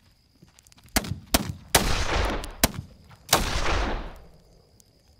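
Loud gunshots ring out and echo.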